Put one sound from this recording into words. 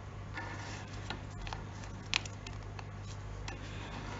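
A metal watch buckle clicks softly as it is fastened.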